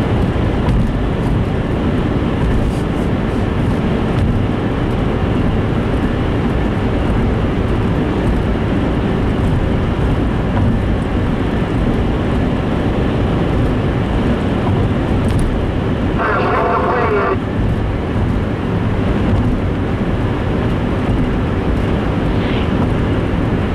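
A car's tyres rumble steadily on a wet road.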